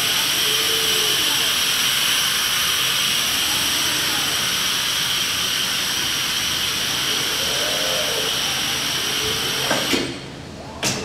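A vacuum lifter hisses steadily, then cuts off.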